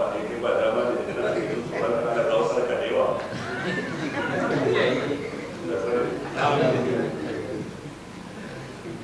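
A man speaks with animation into a microphone, heard through a loudspeaker.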